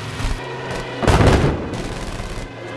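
Explosions burst loudly.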